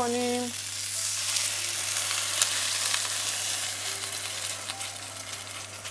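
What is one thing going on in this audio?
Water pours into a hot pan and sizzles.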